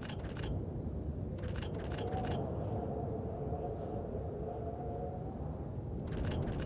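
A game dial clicks as it is turned.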